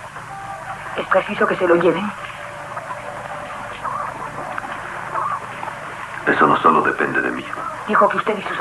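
A man speaks in a friendly, cheerful voice.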